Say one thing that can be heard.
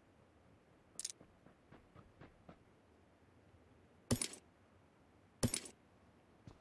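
Gear rustles and clicks as items are picked up.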